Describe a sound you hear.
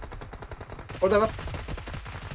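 A young man speaks briefly with animation close to a microphone.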